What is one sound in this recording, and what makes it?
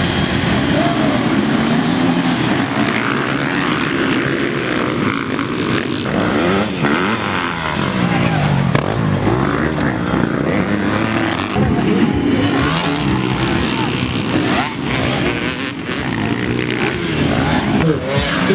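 Motorcycle engines roar and rev as many dirt bikes race off together.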